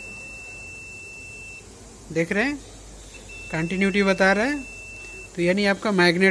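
A multimeter gives a steady high-pitched beep, on and off.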